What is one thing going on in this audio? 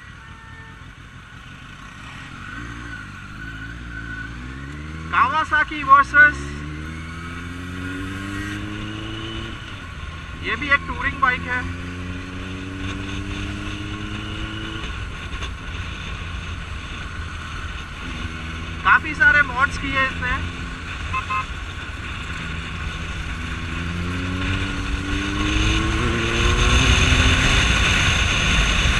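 A motorcycle engine revs up and shifts through the gears, its pitch climbing again and again.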